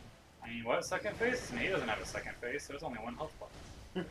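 A fiery explosion bursts with a roar.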